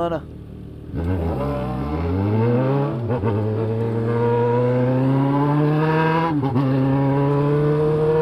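A motorcycle engine accelerates hard, rising in pitch through the gears.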